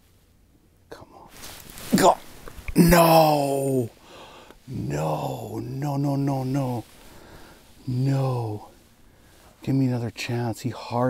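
A man shouts excitedly and talks with animation close by.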